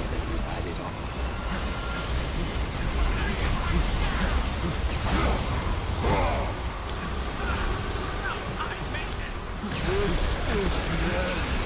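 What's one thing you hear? Energy beams roar and blast past.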